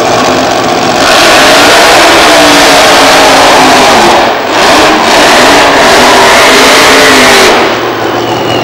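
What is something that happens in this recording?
A nitro funny car engine roars at full throttle during a burnout.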